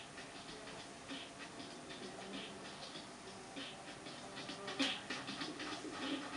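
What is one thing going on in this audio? Video game music and sound effects play from a television speaker.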